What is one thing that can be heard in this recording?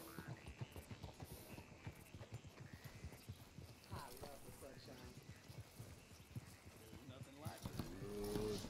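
Horse hooves thud steadily on dirt as a horse walks.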